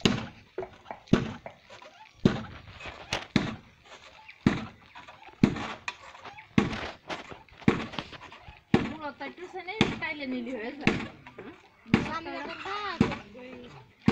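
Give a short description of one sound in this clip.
A wooden foot-operated rice-husking pestle thumps rhythmically into a pit of rice.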